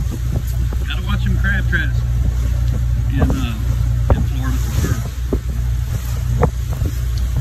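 A boat engine drones steadily at a low pitch.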